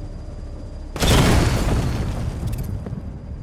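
Sparks burst and crackle in a loud explosion.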